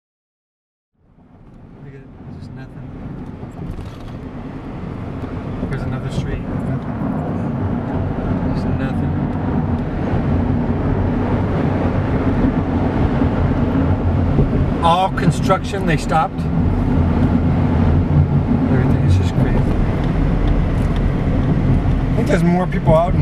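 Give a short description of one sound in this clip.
A car's engine and tyres rumble steadily on a road, heard from inside the car.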